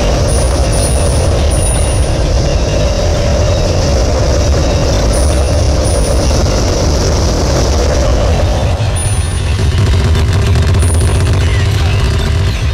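Fiery explosions roar loudly and continuously in a video game.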